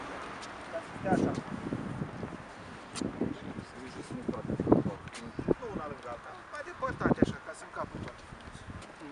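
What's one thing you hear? People in a small crowd talk quietly nearby outdoors.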